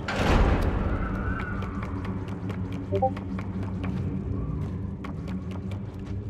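Small footsteps patter on wooden boards.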